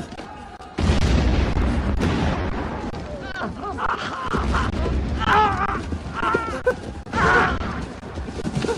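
A wounded man groans and gasps in pain close by.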